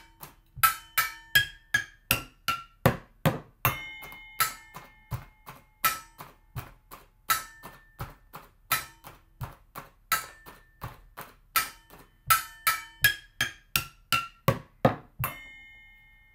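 Plastic strikes metal pots and lids in quick, ringing taps.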